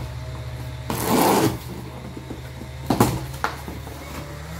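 Packing tape rips as it is cut open.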